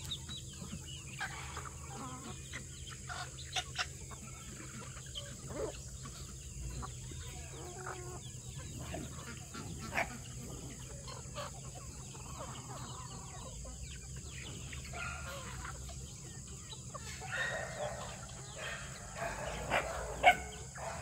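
A large flock of chickens clucks and chatters nearby outdoors.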